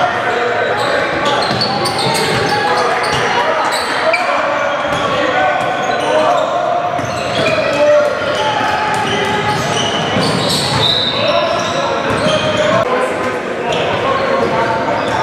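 Young players shout to each other on the court.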